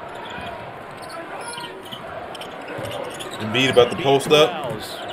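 A crowd murmurs in the background of a basketball broadcast.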